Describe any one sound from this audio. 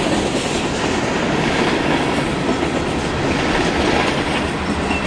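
Loaded coal hopper cars roll past, steel wheels rumbling and clattering on the rails.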